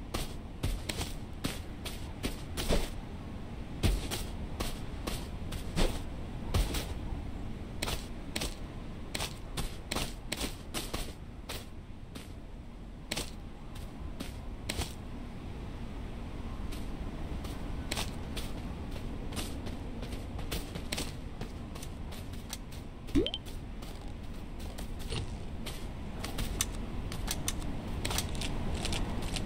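Quick footsteps patter across a hard floor.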